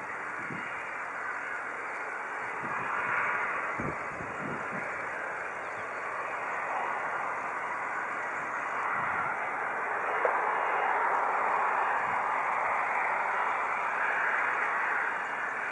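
A twin-engine jet airliner on final approach roars outdoors, growing louder.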